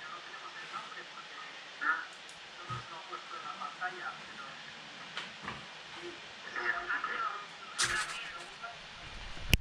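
A man talks calmly over an online call.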